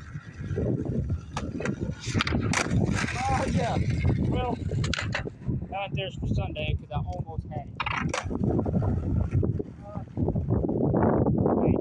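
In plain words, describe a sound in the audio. Skateboard wheels roll and rumble across concrete.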